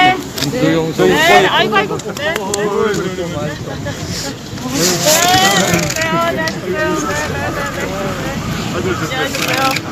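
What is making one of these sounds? Several men and women talk and call out excitedly close by, outdoors.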